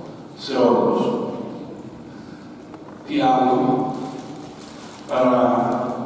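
An elderly man chants in long, held phrases through a microphone, with a slight echo around him.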